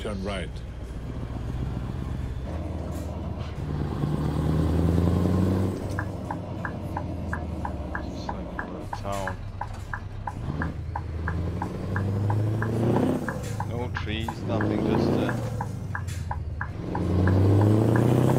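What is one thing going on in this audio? A truck engine rumbles, rising and falling in pitch as it revs.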